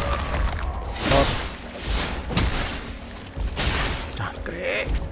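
A blade swishes heavily through water in several swings.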